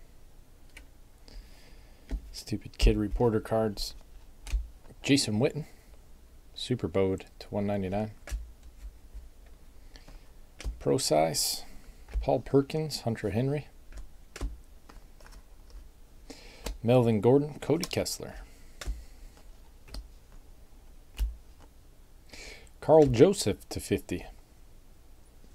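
Trading cards rustle and slide softly as they are flipped through by hand.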